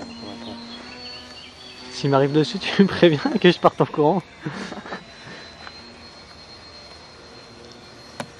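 A small model plane's motor whines steadily overhead.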